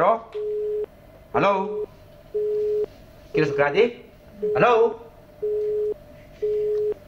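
A phone busy tone beeps repeatedly at an even pace.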